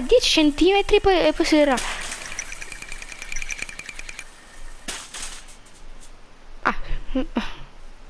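Metal shopping carts rattle and clatter as they roll along a track.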